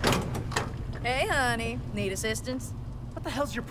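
A young woman speaks playfully.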